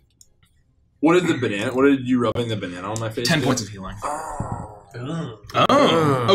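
A man speaks with animation over a microphone.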